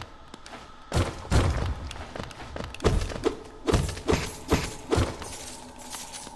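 Sharp slashing strikes ring out in quick bursts.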